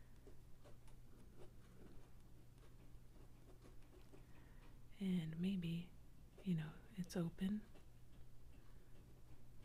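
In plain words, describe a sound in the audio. A pen scratches softly across paper.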